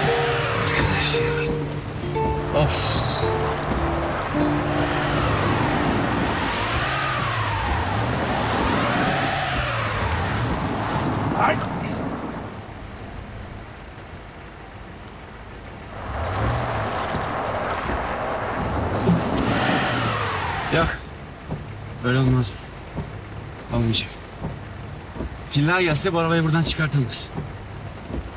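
A man sings along loudly and playfully.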